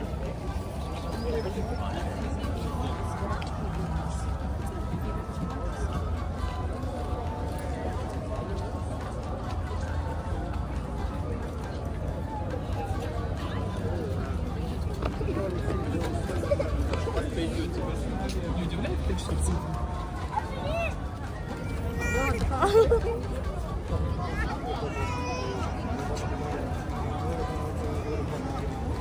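A crowd of people chatters all around outdoors.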